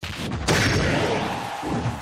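A flame blast whooshes.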